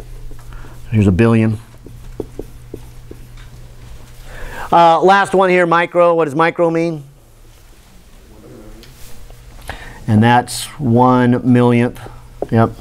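A middle-aged man lectures in a loud voice.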